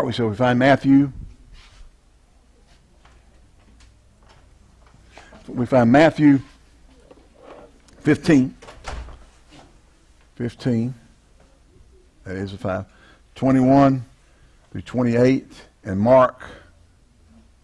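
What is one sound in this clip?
A man speaks calmly through a microphone in short bursts, pausing between phrases.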